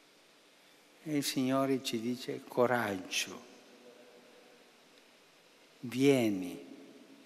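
An elderly man speaks slowly and calmly into a microphone, with echo.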